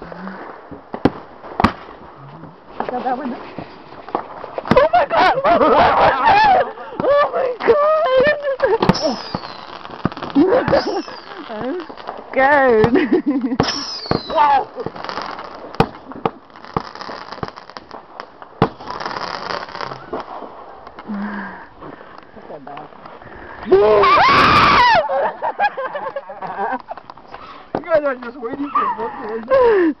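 Fireworks pop and crackle outdoors at night.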